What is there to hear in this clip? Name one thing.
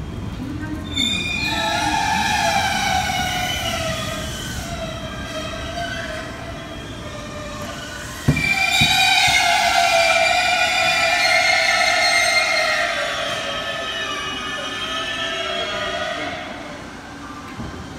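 Train brakes squeal with falling, whining tones as the train slows down.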